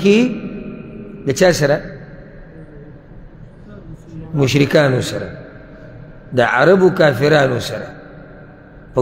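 A man recites in a chanting voice through a microphone, echoing in a reverberant room.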